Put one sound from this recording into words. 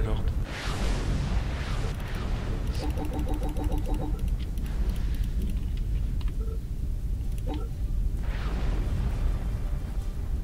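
Whooshing bursts of noise swell and fade.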